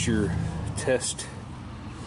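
A rubber cap pops off a spark plug.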